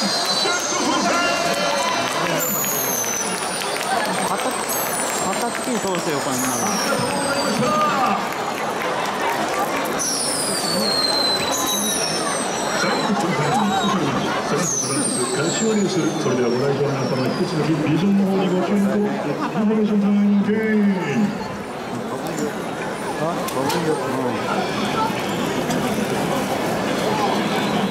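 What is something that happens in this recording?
A large stadium crowd cheers and chants loudly outdoors.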